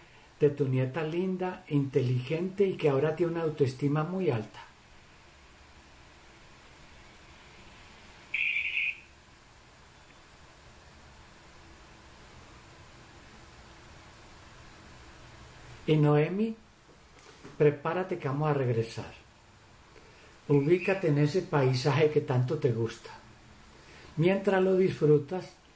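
An older man speaks calmly and slowly through an online call.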